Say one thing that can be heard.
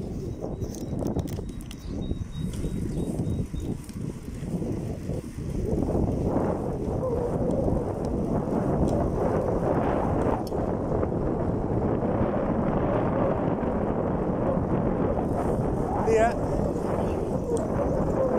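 Bicycle tyres roll steadily on asphalt.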